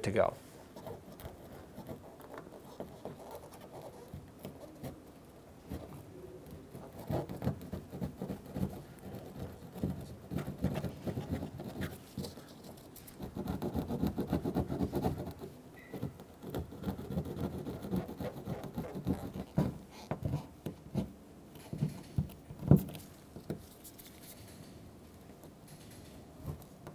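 A plastic tool scrapes and rubs against a hard surface.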